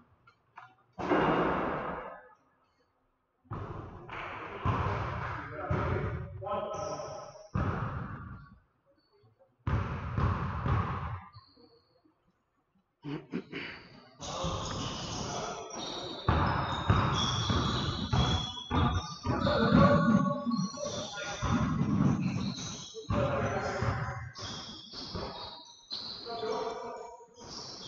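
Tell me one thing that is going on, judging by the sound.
Men shout and call out in an echoing gym.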